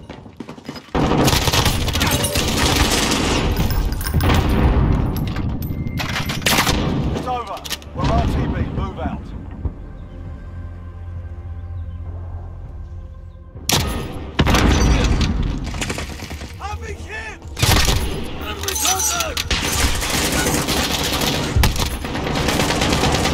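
Gunshots fire in rapid bursts at close range.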